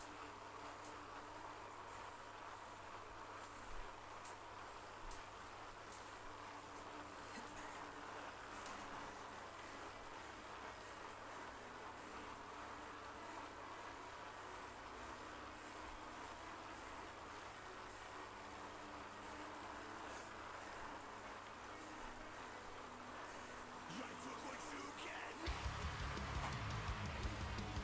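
An indoor bike trainer hums steadily under pedalling.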